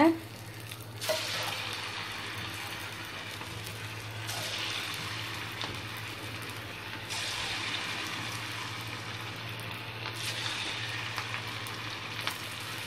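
Batter sizzles and crackles loudly in hot oil.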